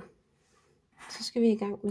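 A metal lid scrapes as it is twisted on a glass jar.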